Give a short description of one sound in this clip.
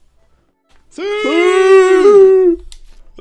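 A young man lets out a long, drawn-out cry.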